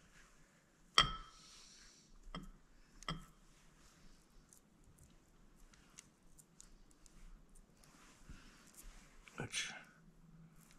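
Metal parts clink and tap together close by.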